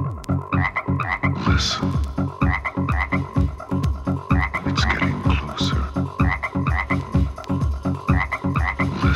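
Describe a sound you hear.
Electronic dance music with a steady pounding beat plays from a record turntable.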